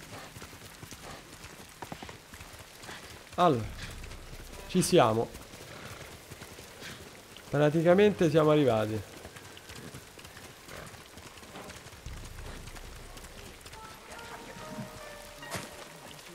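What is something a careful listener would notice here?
Horse hooves thud on a dirt path.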